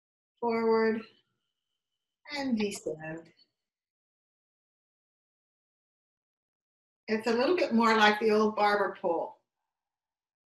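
An older woman speaks calmly and expressively, close by, in short bursts.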